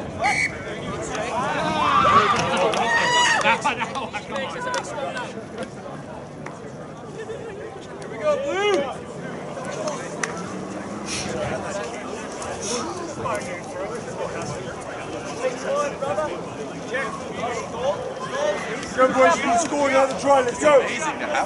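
Men shout and call out across an open field outdoors.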